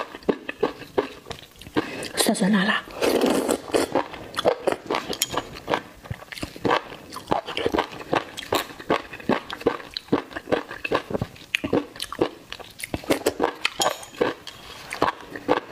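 Chopsticks click against a ceramic bowl.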